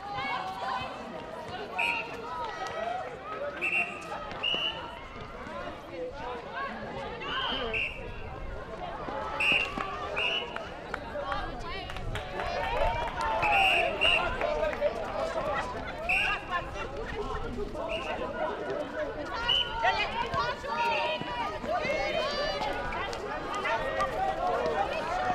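Young women shout and call out to each other on a court.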